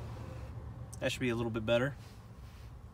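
A man speaks briefly and close by.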